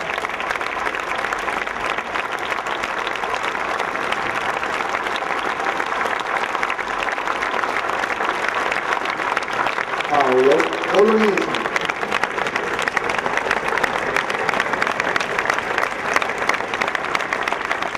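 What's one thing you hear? A large crowd claps and cheers outdoors.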